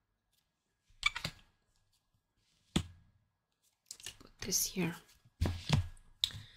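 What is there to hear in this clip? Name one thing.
Cards slap softly down onto a surface one by one.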